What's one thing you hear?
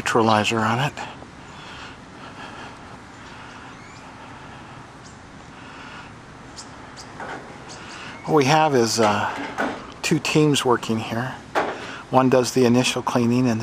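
A man speaks calmly nearby, outdoors.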